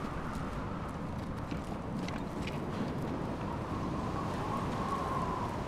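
Footsteps crunch on snow and wooden boards.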